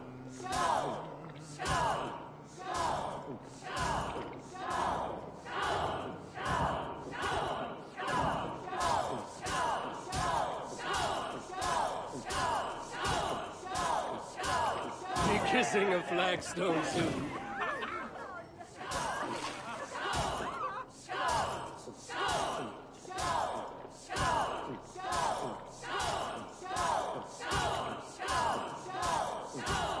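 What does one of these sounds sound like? A crowd of men chants in a steady, fast rhythm, echoing in a large hall.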